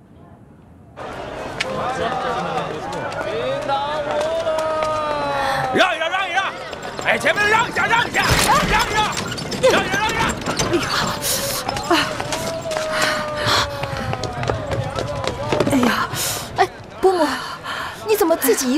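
A crowd of people murmurs and calls out outdoors.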